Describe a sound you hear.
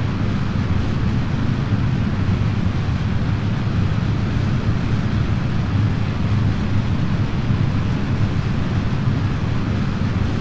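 A rocket engine roars steadily with a deep, rumbling thrust.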